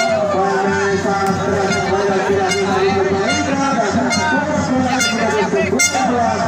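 A large outdoor crowd shouts and cheers.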